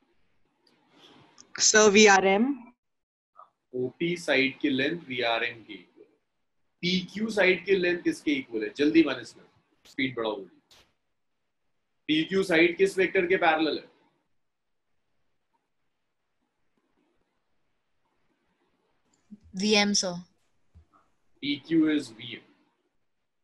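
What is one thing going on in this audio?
A young man speaks calmly and explains over an online call.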